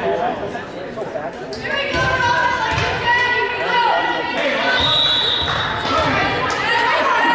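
Young women call out and chatter in a large echoing gym.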